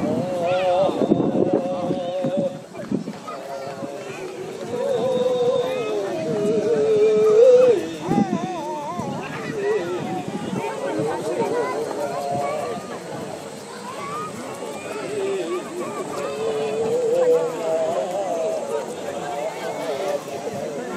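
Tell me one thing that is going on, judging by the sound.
A flute plays a wavering melody through loudspeakers outdoors.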